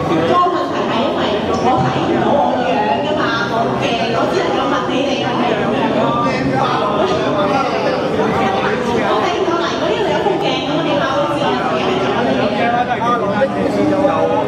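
A young woman speaks into a microphone with animation, heard through a loudspeaker.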